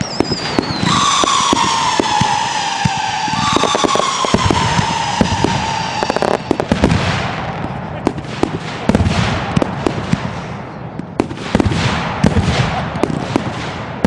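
Fireworks bang and crackle in rapid bursts.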